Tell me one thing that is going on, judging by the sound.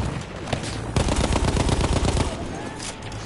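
A machine gun fires a rapid burst close by.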